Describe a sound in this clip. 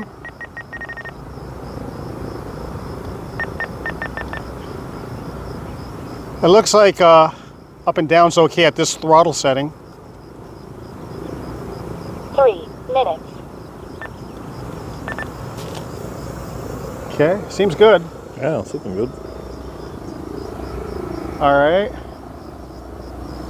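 A propeller aircraft drones steadily overhead in the distance.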